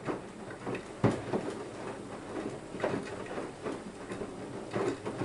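A washing machine drum turns steadily with a low hum.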